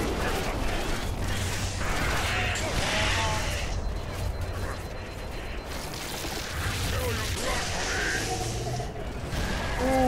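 An energy sword hums and slashes with loud whooshes.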